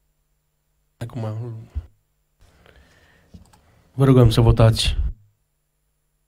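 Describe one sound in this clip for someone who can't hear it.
A middle-aged man speaks briefly into a microphone.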